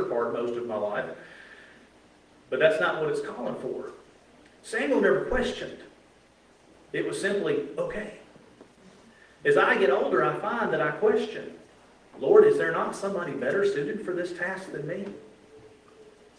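A man speaks steadily through a microphone in an echoing hall, pausing between phrases.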